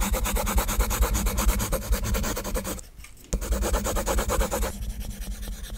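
A pencil scratches rapidly back and forth on paper.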